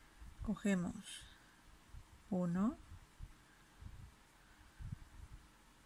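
Hands softly rub and handle a knitted ball of yarn.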